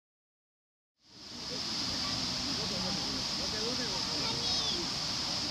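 A stream rushes over rocks.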